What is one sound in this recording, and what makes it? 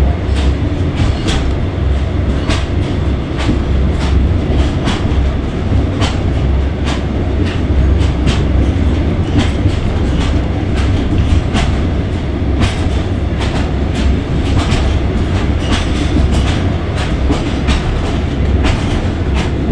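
Train wheels click over rail joints at an irregular pace.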